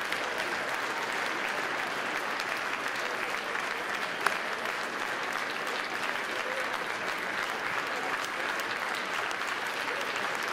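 A large audience applauds steadily in a big hall.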